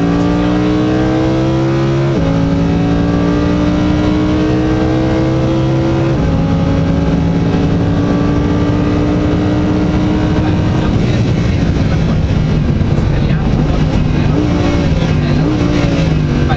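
A sports car engine roars loudly from inside the cabin, revving up through the gears with sharp drops at each gear change.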